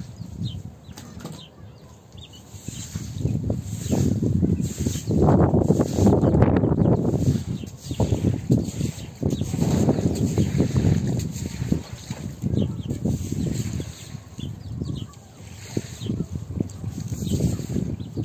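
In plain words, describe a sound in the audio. A stiff broom scrubs and swishes across a wet floor.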